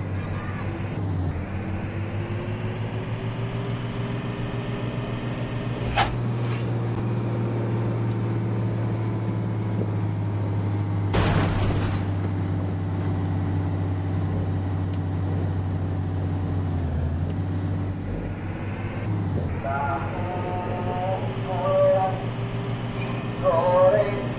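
A bus engine hums steadily, with a low drone that shifts slightly as it drives.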